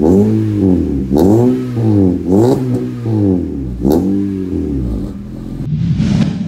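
A car engine revs up and down repeatedly through a loud exhaust.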